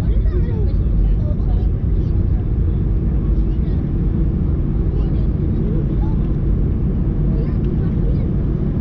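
A jet airliner's engines rumble steadily from inside the cabin as it taxis.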